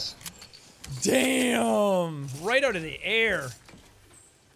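A young man laughs into a headset microphone.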